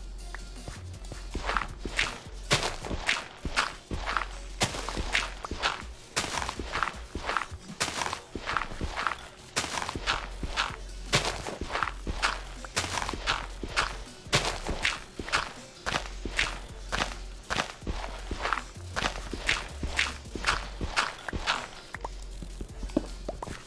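A shovel digs rapidly into dirt with crunching, scraping strokes.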